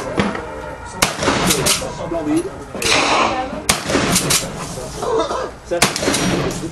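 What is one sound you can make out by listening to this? Gunshots crack loudly outdoors, a few seconds apart, each followed by a short echo.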